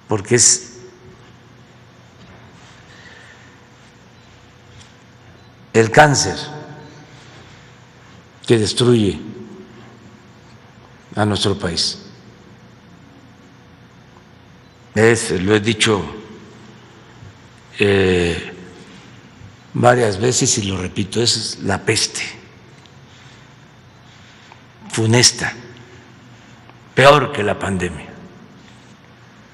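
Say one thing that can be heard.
An elderly man speaks slowly into a microphone, with long pauses between short phrases.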